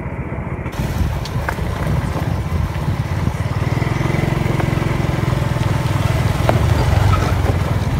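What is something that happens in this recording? A three-wheeled taxi engine putters past.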